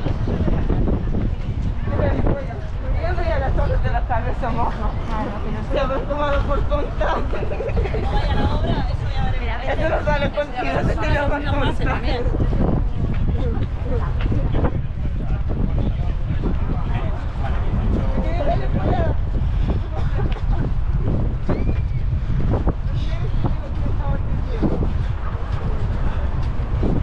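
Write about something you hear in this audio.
Wind blows hard against the microphone outdoors.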